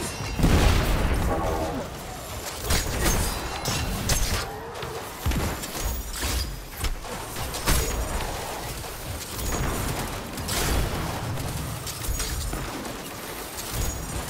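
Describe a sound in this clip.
Electric bolts crackle and zap.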